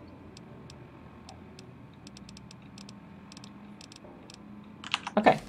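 Soft electronic clicks tick as a menu list scrolls.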